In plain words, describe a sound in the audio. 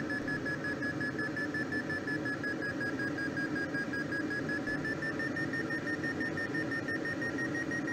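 Wind rushes steadily past a glider's canopy.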